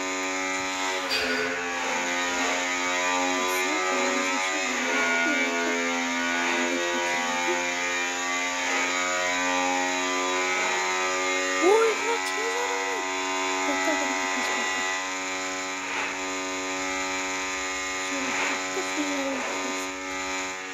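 A motorcycle engine drones steadily at high speed.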